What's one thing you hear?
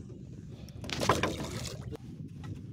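Water splashes as a fish drops into a lake.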